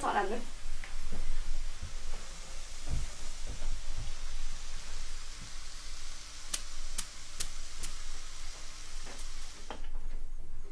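Meat sizzles in a frying pan.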